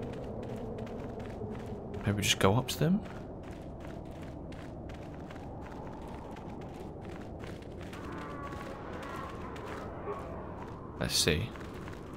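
Footsteps run over soft sand.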